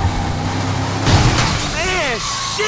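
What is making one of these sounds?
Glass shatters as a car crashes through a window.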